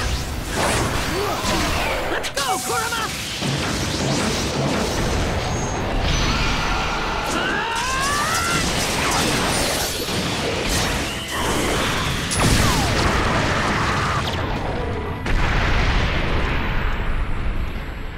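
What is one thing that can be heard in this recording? Sharp energy blasts whoosh and crackle.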